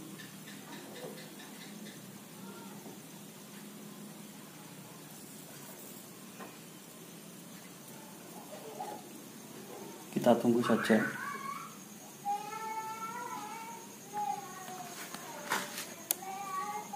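Small gas bubbles fizz faintly in water.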